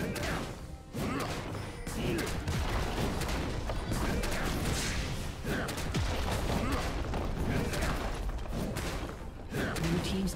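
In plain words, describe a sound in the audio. Game spell effects crackle and blast in a fight.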